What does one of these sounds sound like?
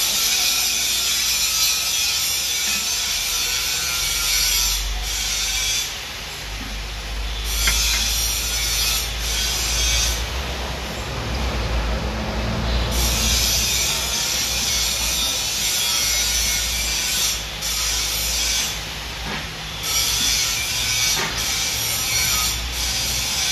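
A cutting tool scrapes and hisses against spinning metal.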